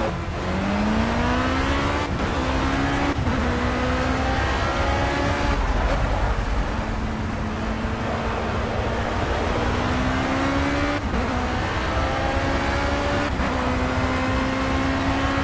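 A race car engine roars and revs higher through each gear, with sharp shifts.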